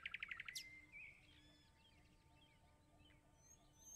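A small plate is set down with a soft clink.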